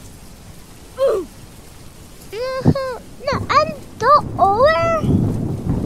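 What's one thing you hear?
A young boy speaks with excitement into a headset microphone.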